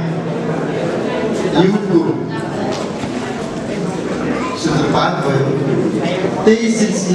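An elderly man sings through a microphone.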